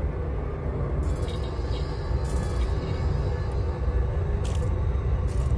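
Short electronic beeps and chirps sound.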